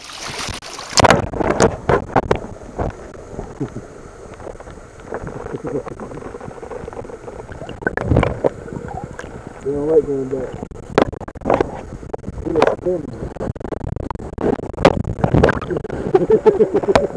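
Water gurgles and rushes past under water.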